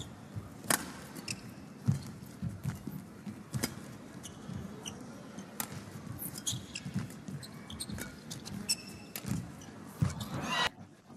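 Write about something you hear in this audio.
Rackets smack a shuttlecock back and forth in sharp, quick hits.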